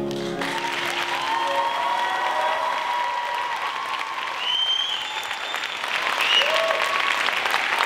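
A piano plays along.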